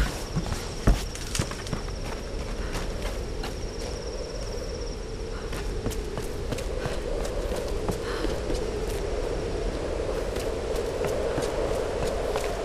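Footsteps fall on stone and earth.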